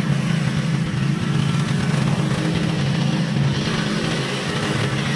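A lawn mower engine runs with a steady, rough drone.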